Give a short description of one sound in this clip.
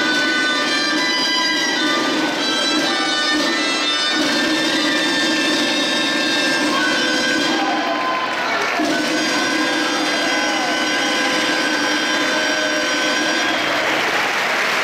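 A live folk band plays a lively tune in a large echoing hall.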